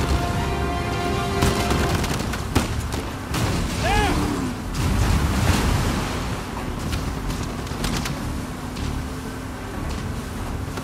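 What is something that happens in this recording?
Waves crash and splash against a boat's hull.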